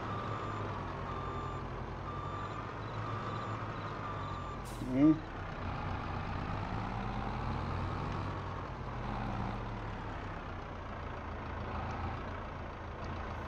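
A heavy loader engine rumbles steadily.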